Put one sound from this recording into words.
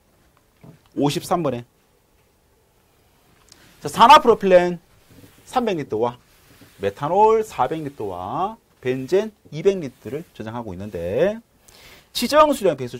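A man lectures with animation, close to a microphone.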